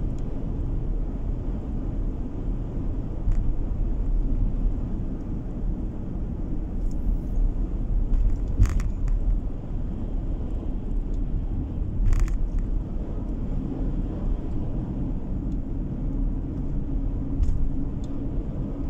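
Tyres roll on smooth asphalt.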